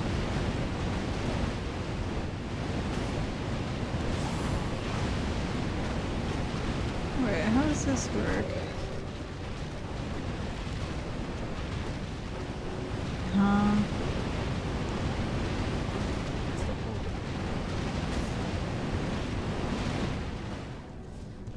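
Fiery explosions burst in quick succession.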